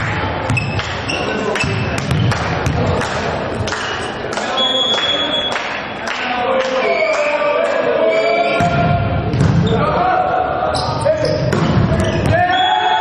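A volleyball is struck by hands in an echoing sports hall.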